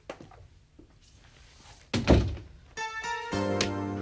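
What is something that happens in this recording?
A laptop lid clicks shut.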